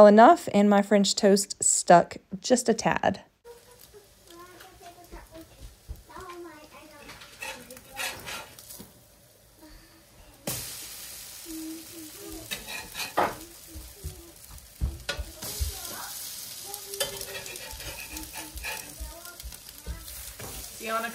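A metal spatula scrapes and taps against a griddle.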